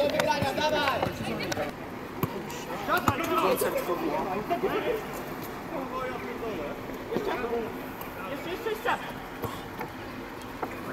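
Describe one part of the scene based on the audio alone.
Men shout and call out across an open outdoor pitch.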